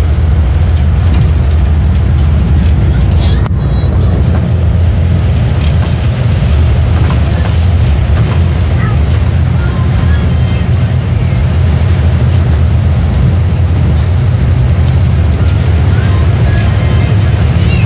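Rain patters on a bus windscreen.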